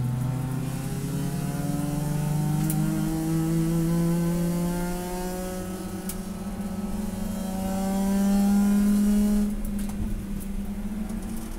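A race car engine roars loudly up close, rising in pitch and dropping again.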